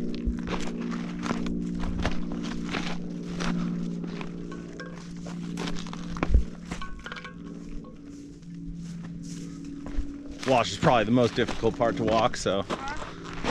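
Footsteps crunch on dry, stony ground.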